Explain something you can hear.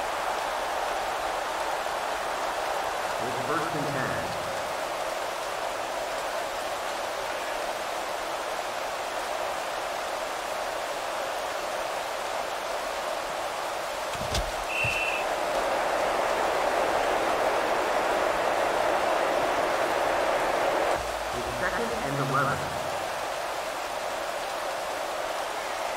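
A large crowd cheers and murmurs steadily in a stadium.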